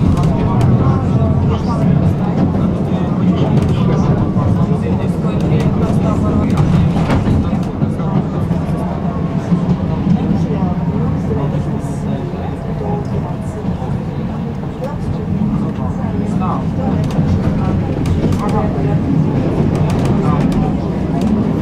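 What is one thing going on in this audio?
A tram rumbles steadily along its tracks.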